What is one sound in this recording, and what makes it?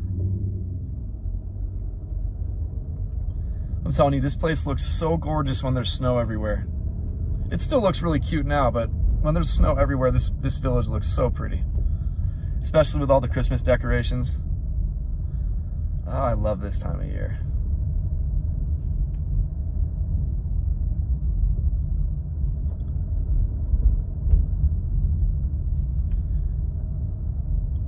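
A car rumbles steadily along a road, heard from inside.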